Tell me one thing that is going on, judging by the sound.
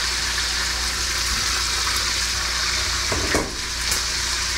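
A metal lid clinks against a pan.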